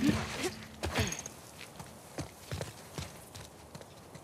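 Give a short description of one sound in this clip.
Footsteps run quickly over grass and stone.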